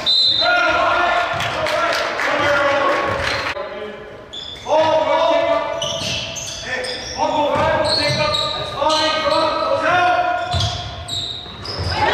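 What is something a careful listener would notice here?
A basketball bounces on a hard wooden floor in a large echoing gym.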